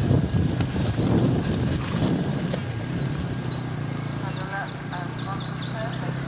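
A horse canters on grass with soft, thudding hoofbeats.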